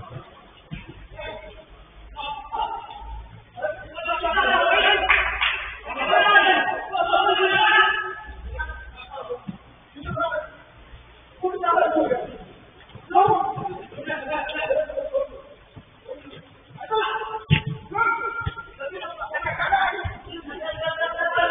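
Young men shout to one another in a large echoing hall.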